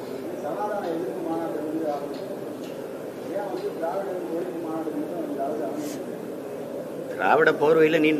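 A man speaks calmly into microphones.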